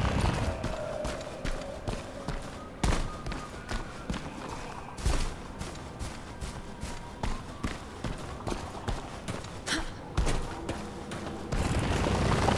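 Footsteps crunch on stone and grass at a steady pace.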